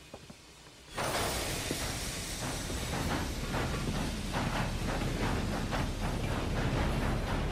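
A train rumbles and clatters along the rails.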